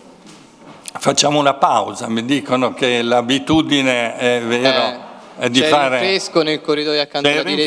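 A man speaks into a microphone, heard through loudspeakers in a large room.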